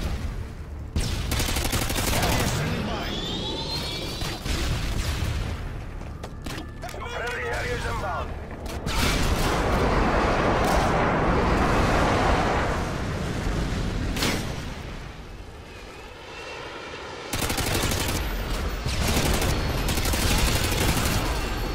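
Rifle shots ring out in rapid bursts.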